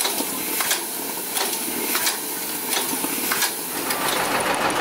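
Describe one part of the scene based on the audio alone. Steam hisses from a locomotive.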